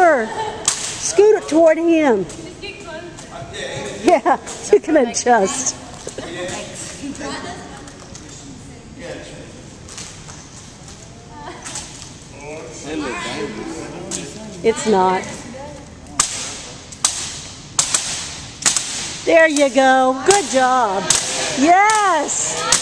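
Young women call out and talk in a large echoing hall.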